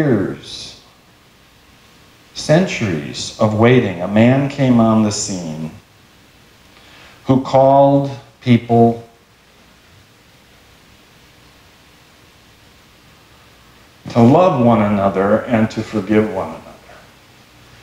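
A middle-aged man speaks calmly and with feeling, in pauses, in a room with a slight echo.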